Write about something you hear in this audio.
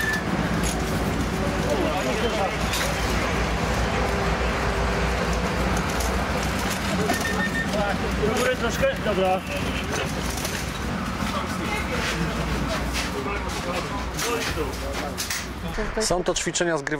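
Rescuers talk among themselves outdoors.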